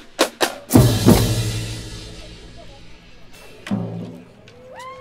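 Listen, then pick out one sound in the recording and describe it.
Cymbals crash loudly and ring out.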